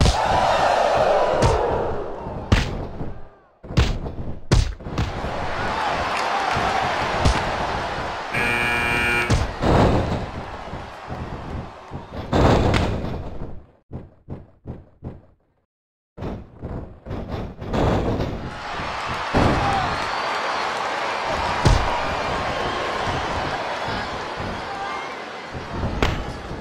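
Heavy body slams and punches thud on a wrestling ring mat.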